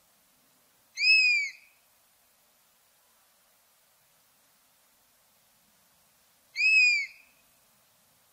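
A bird of prey gives a high, piercing cry twice.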